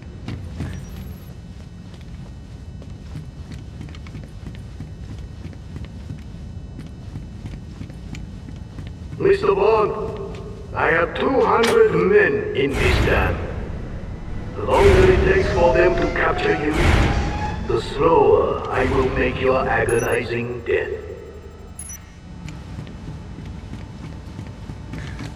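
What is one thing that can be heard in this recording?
Footsteps run across a metal floor.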